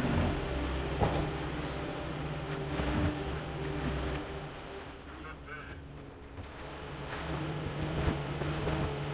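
Metal clanks and bangs as a loader bucket scrapes the floor.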